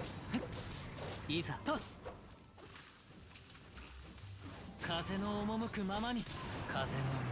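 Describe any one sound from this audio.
Swords clash and slash with sharp impacts.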